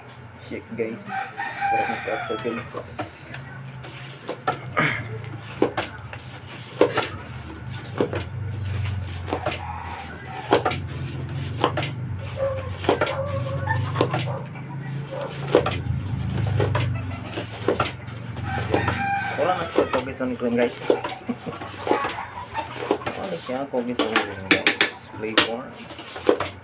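A wooden pestle pounds rhythmically into a metal mortar with dull thuds.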